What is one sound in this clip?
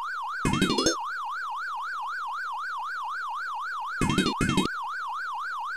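Short electronic game bursts chirp twice.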